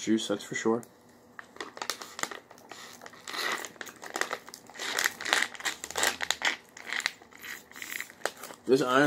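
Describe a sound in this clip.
A young man sips and slurps a drink through a straw.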